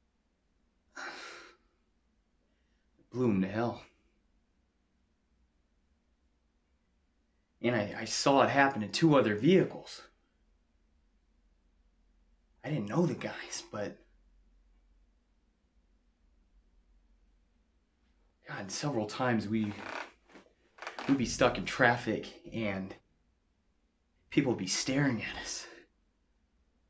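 A young man speaks calmly in short bursts with pauses, close to a microphone.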